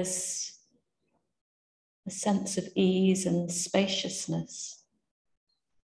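A woman speaks calmly, then falls silent.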